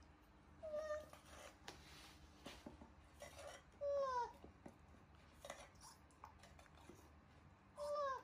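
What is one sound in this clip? A spoon scrapes inside a tin.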